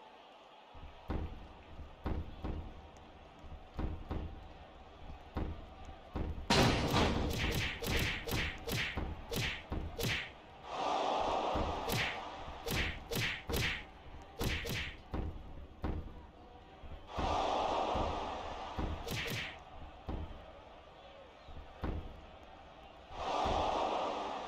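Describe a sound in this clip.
Blows and body slams thud and smack in quick bursts.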